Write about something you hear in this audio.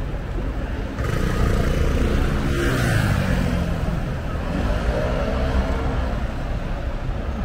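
A bus engine hums loudly close by, its pitch rising and falling.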